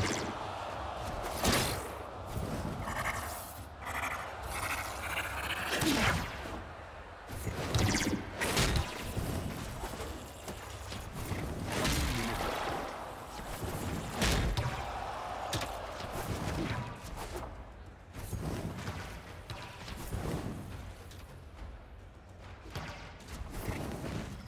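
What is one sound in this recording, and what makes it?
Whooshing game sound effects rush past.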